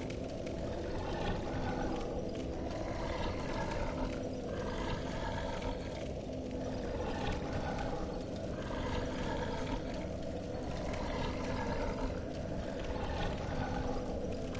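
A fire crackles softly nearby.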